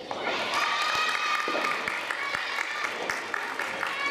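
A tennis ball is struck by rackets and bounces in a large echoing hall.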